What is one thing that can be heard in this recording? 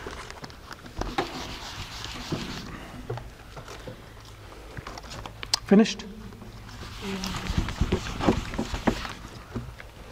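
A cloth rubs squeakily across a whiteboard.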